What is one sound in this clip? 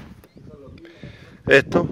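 A hand taps on a hollow metal tank.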